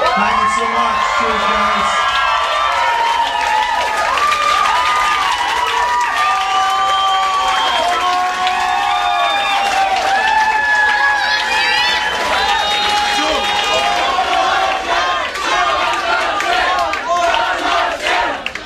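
A large crowd sings along loudly in a reverberant room.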